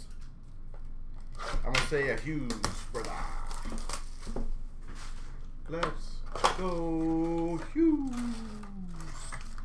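A cardboard box is torn open by hand.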